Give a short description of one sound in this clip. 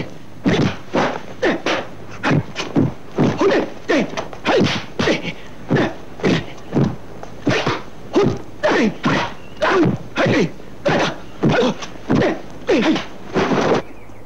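A man lets out short, sharp fighting cries, over and over.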